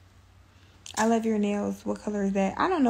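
A young woman speaks close to a phone microphone.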